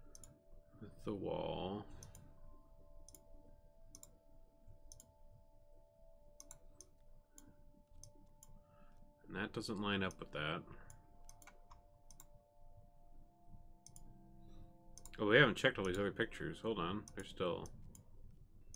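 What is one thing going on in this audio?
A young man speaks briefly and calmly into a microphone, close by.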